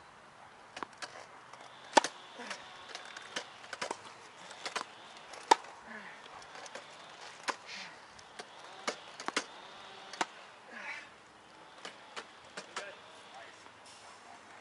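A tennis ball is struck and bounces with sharp pops.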